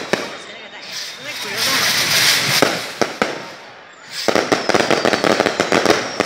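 Fireworks crackle and sizzle.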